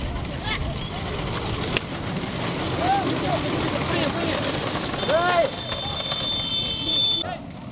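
Cart wheels rattle on a road.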